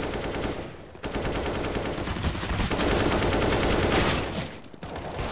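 A rifle fires.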